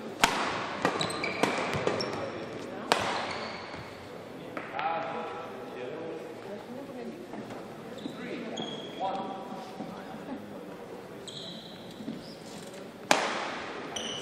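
Shuttlecocks are struck with sharp racket cracks in a large echoing hall.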